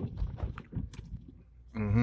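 A windshield wiper swishes across wet glass.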